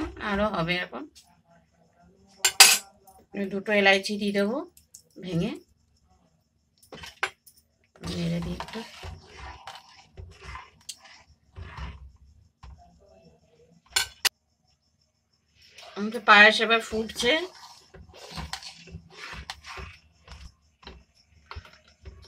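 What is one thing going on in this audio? A metal ladle stirs milk in a metal pot.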